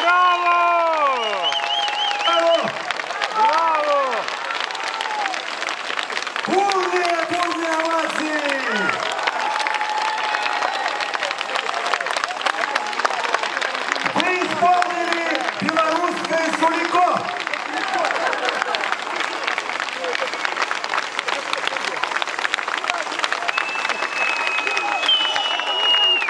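A large outdoor crowd claps along in rhythm.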